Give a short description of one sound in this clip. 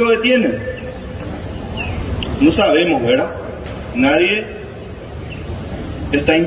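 A man speaks firmly into a microphone.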